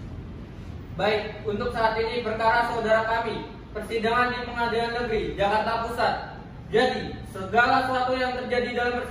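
A young man speaks clearly and steadily from nearby.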